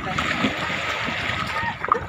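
Fish splash in the water.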